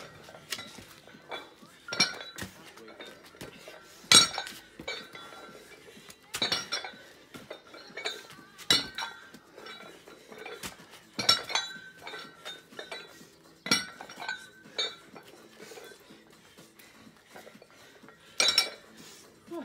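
Dumbbell weights clank sharply, again and again.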